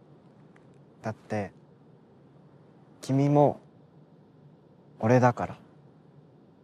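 A young man speaks softly and briefly nearby.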